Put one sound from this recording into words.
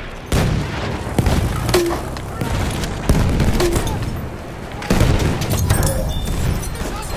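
Gunshots crack and boom with rumbling echoes.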